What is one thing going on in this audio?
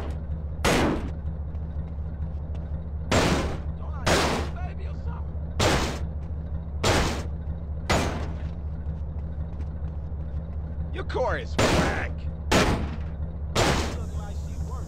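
A baseball bat strikes a car's metal body with loud, heavy bangs.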